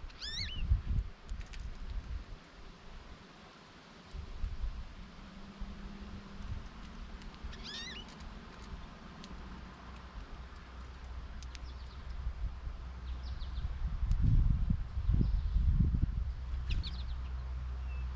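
A small bird chirps in short, high bursts close by.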